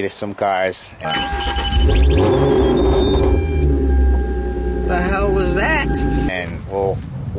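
A car engine hums inside a moving car.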